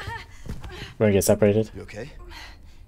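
A young woman asks a question.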